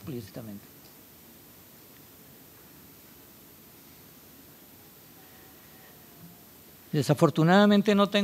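An older man speaks calmly through a microphone in a large room.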